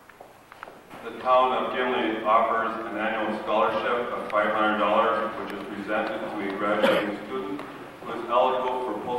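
A man speaks calmly into a microphone, heard through loudspeakers in an echoing hall.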